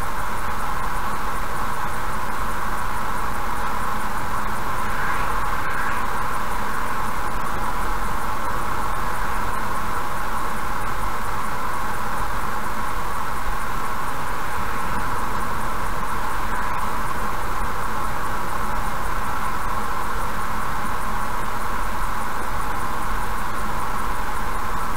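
Tyres roar steadily on a smooth highway from inside a moving car.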